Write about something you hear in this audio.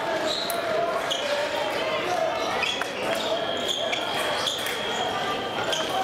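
Fencers' shoes tap and squeak quickly on a hard floor.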